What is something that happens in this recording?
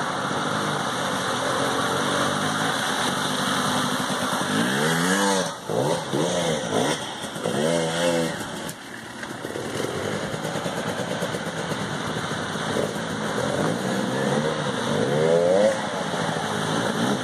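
Several motorbike engines drone in the distance.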